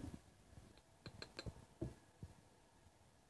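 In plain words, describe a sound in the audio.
A metal lid clinks and taps against a tin.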